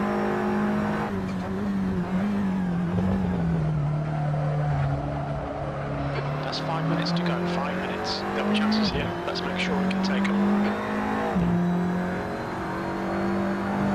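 A racing car engine roars steadily, its pitch dropping and rising with gear shifts.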